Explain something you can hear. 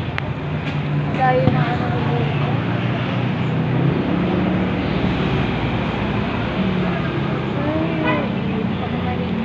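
A young boy talks casually, close by.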